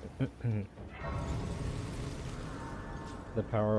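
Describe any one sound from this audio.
A bright shimmering chime swells and fades.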